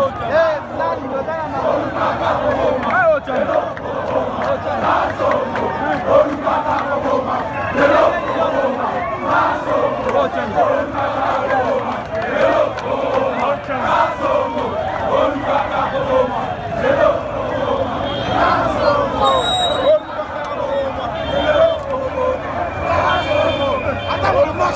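A large crowd of men and women sings and chants loudly outdoors, close by.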